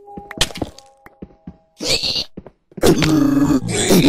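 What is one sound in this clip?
A zombie creature grunts.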